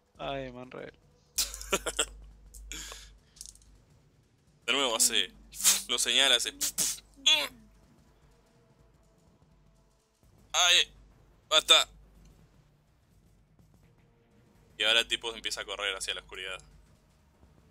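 A man with a deep voice speaks with animation over a headset microphone, in bursts with pauses.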